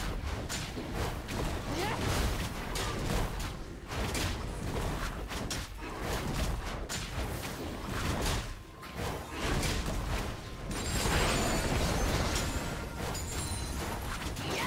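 Game spell effects crackle and clash during a fight.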